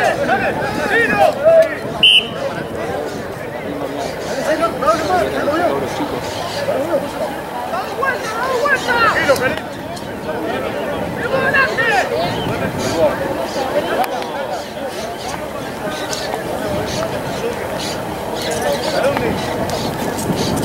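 Young men call and shout to each other across an open field.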